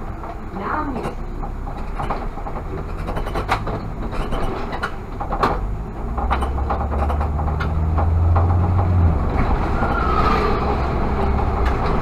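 A car engine hums steadily with tyre noise on the road.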